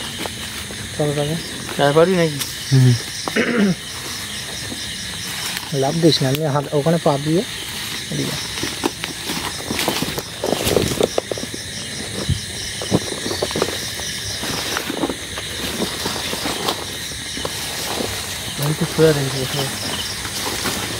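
Young men talk to each other nearby.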